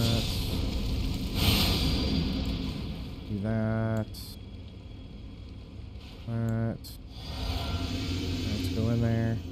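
Flames whoosh and roar.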